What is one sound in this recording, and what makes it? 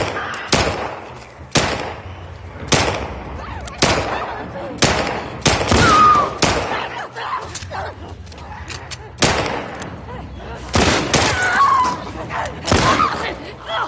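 Pistol shots ring out one after another in a room that echoes.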